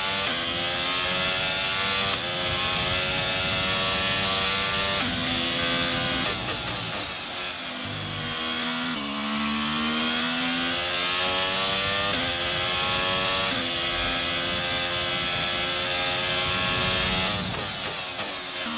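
A racing car engine screams at high revs, shifting up through the gears and dropping as it brakes into a corner.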